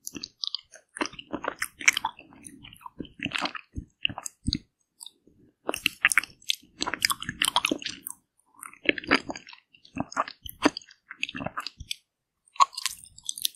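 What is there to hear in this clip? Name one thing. A woman chews ice cream wetly close to a microphone.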